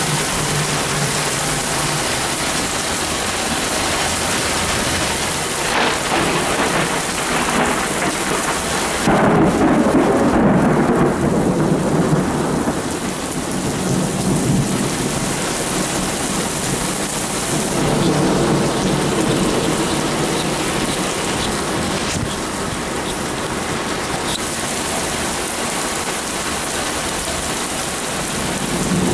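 Rain pours down steadily.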